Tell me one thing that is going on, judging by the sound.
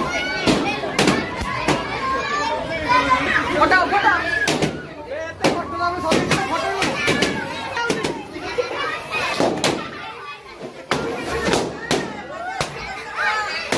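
A crowd of men, women and children chatters and cheers nearby.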